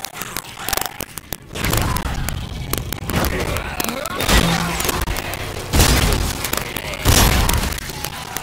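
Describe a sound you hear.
Gunshots bang loudly in quick bursts.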